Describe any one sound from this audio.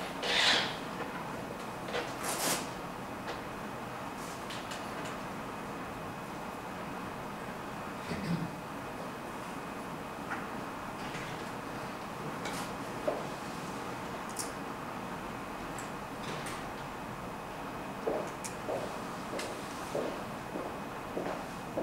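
Chess pieces click softly on a board.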